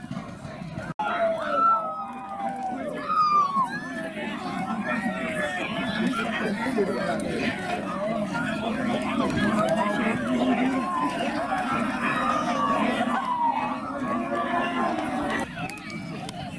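Many men and women talk loudly all around, close by, outdoors.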